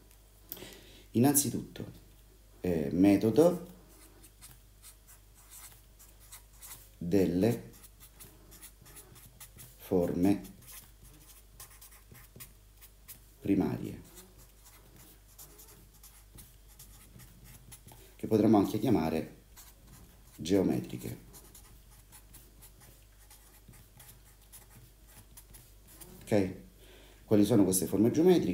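A felt-tip marker squeaks and scratches across paper.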